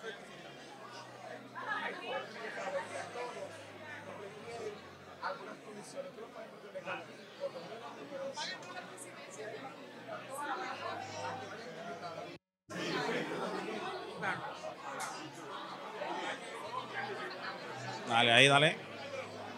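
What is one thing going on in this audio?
A crowd of men and women chatter and laugh nearby.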